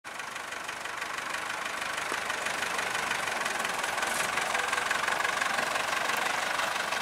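A tractor engine idles.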